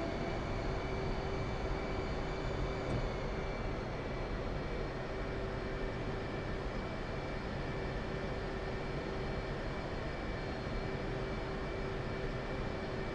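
A jet engine roars steadily at idle.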